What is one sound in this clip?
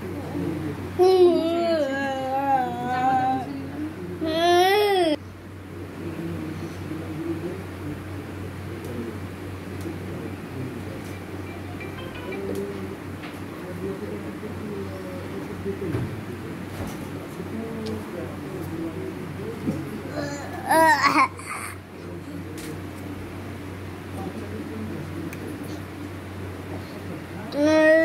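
A young child whines loudly in high, wavering cries close by.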